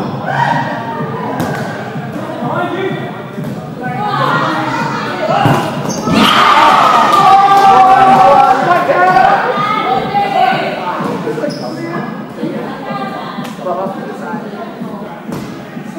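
Children shout and call out with excitement in a large echoing hall.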